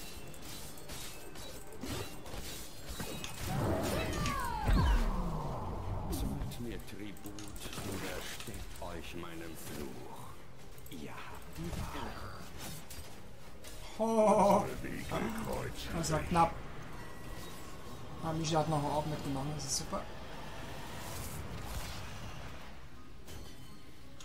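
Spells, blasts and clashing weapons ring out in a game battle.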